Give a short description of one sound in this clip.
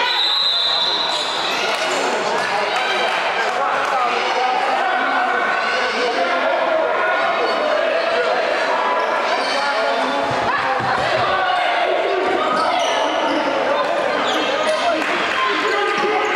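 Sneakers squeak on a hard court in a large echoing gym.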